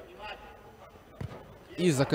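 A football is kicked hard with a thud.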